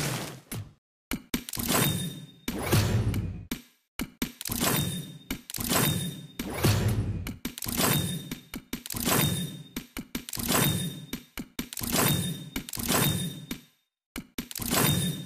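Video game reward sounds whoosh and chime again and again.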